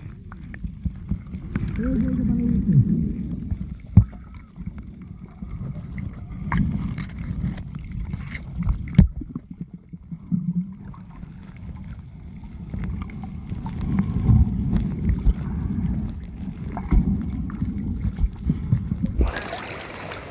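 Water rumbles and thuds, muffled as if heard underwater.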